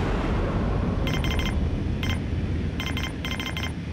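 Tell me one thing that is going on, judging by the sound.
Soft interface clicks tick in quick bursts.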